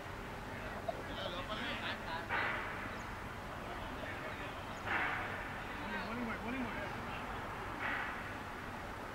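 Men talk calmly in the distance.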